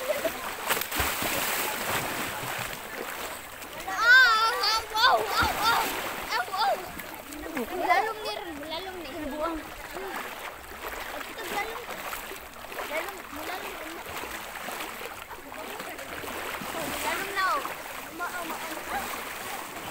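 Water splashes as people wade through shallow sea.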